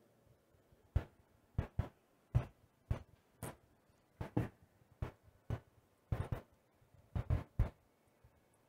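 Footsteps thud on a hollow stage floor.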